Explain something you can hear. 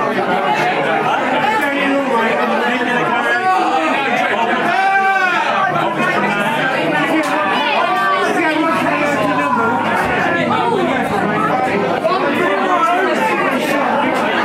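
A crowd chatters loudly all around in an echoing room.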